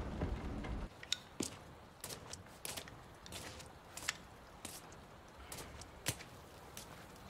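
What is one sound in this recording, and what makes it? Footsteps tap on hard ground.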